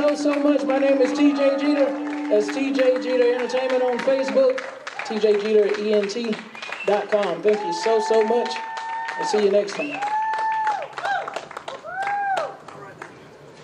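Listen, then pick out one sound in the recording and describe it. A man sings close into a microphone.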